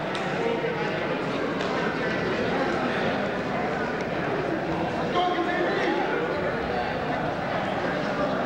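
Wrestlers' bodies thump on a mat.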